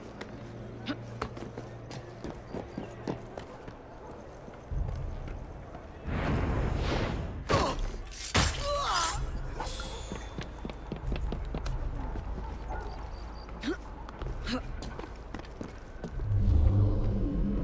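Footsteps patter quickly across roof tiles.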